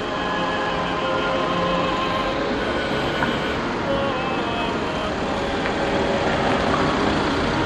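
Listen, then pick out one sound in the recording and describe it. A tractor engine rumbles nearby.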